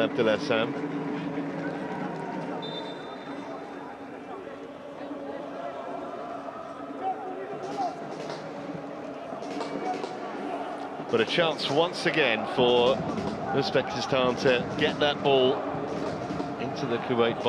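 A large stadium crowd murmurs and chants in the distance.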